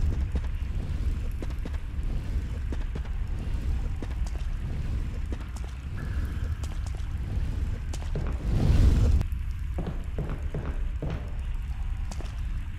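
Footsteps scrape and tap on a gritty floor.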